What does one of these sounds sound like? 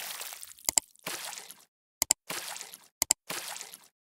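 A mouse clicks sharply several times.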